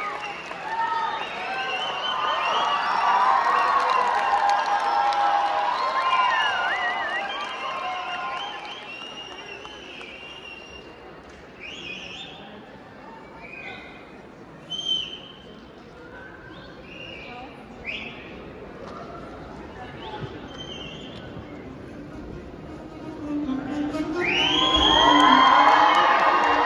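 Music plays over loudspeakers in a large echoing hall.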